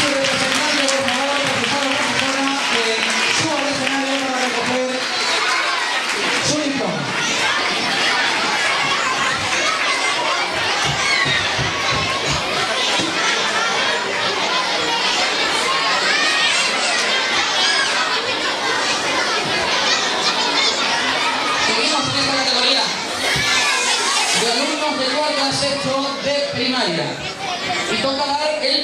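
A crowd of children chatters and calls out loudly in a large hall.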